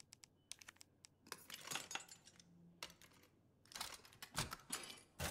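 A lock pick clicks and scrapes inside a padlock.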